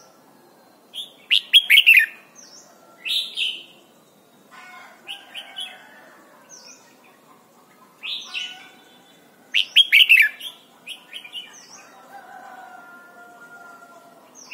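A small bird sings loud, sharp chirping phrases close by.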